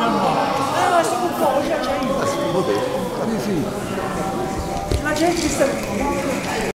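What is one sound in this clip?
A crowd of men and women chatters throughout a large echoing hall.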